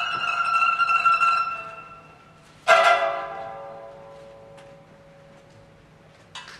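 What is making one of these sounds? A lute is plucked, its notes ringing out and slowly fading.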